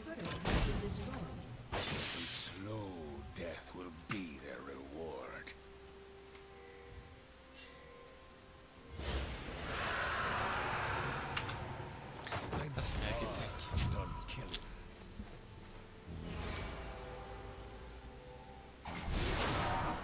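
Fantasy game spells crackle and whoosh in combat.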